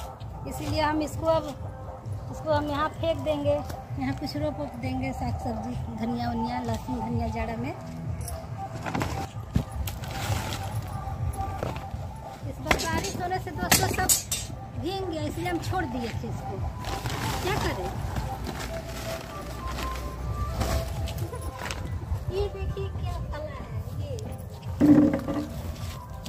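A woman talks calmly close by, outdoors.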